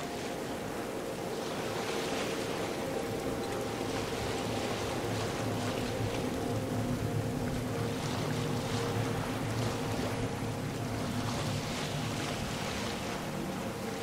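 Wind blows steadily over open water.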